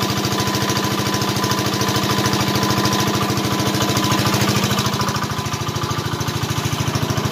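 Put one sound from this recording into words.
A small diesel water pump engine chugs loudly and steadily up close.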